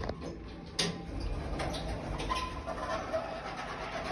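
Lift doors slide open.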